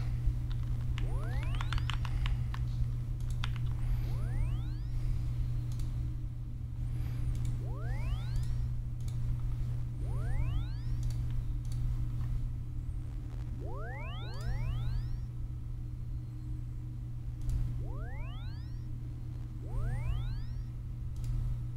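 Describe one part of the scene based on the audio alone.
Rising electronic chime tones play again and again at a steady pace.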